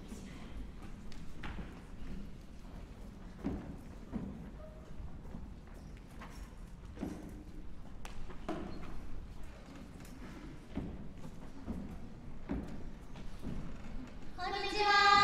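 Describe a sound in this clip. Footsteps and knocks sound on a wooden stage.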